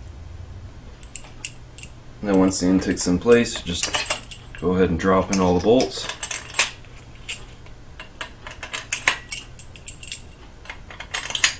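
Metal tools click and clink against an engine.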